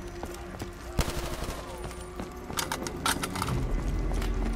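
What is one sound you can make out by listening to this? Gunshots crack from a game.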